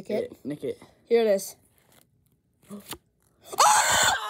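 Stiff playing cards slide and flick against each other.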